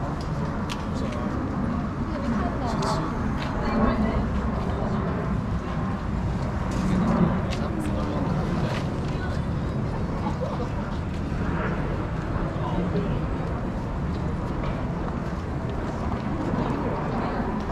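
A crowd of passersby chatters nearby outdoors.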